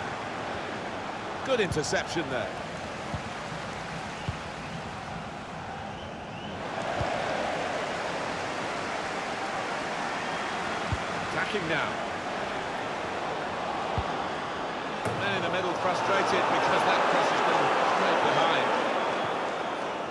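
A large stadium crowd roars steadily and swells louder.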